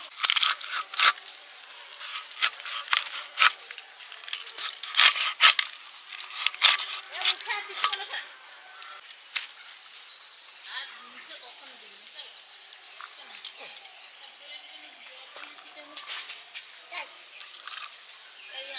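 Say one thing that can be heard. A blade slices wetly through fish flesh.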